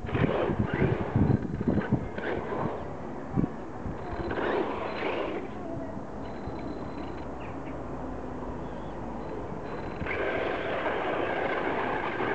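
Tyres spray and scrape through loose sand.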